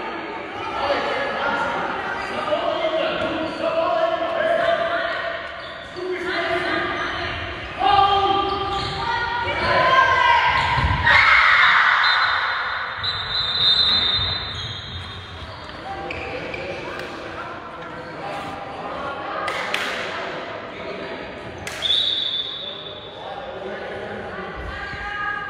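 Spectators shout and cheer, echoing through a large hall.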